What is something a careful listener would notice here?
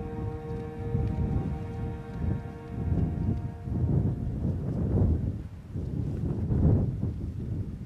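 Strong wind gusts and rumbles outdoors.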